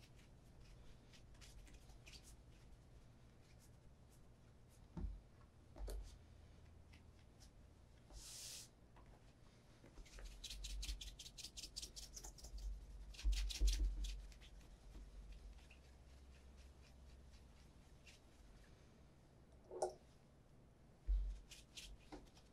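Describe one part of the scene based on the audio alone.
A cloth rubs briskly against leather.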